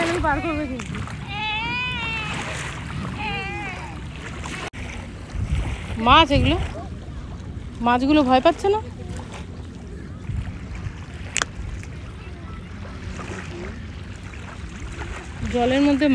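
Gentle waves lap in shallow water.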